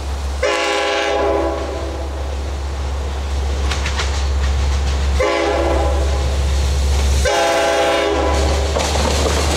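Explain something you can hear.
A train horn blows loud, long blasts.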